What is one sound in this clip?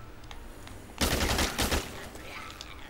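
A handgun fires a few shots.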